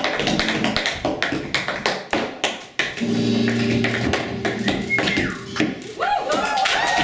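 Feet stamp and tap on a wooden stage.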